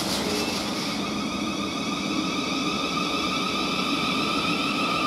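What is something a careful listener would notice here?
A train pulls away with a rising electric whine.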